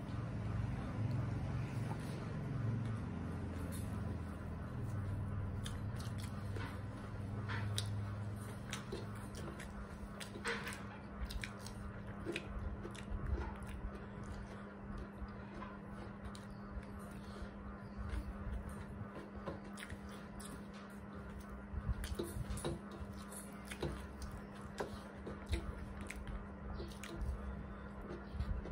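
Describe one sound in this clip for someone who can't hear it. Hands squish and mix rice on metal plates close by.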